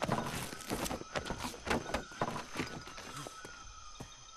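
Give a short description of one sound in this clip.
Footsteps rustle through grass and plants.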